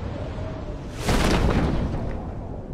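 A parachute snaps open with a sudden whoosh.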